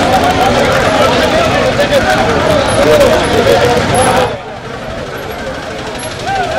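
A crowd of men shout and chant loudly outdoors.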